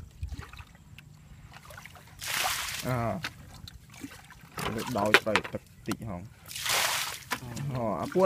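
A bucket knocks and scrapes in shallow water.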